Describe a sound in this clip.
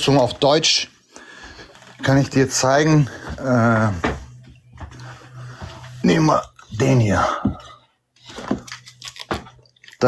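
A man speaks calmly and close up, in short bursts with pauses.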